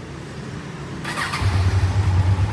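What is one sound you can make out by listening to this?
A motorcycle engine cranks and starts.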